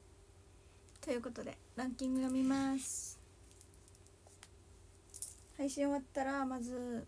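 A young woman speaks in a high, sing-song voice close to the microphone.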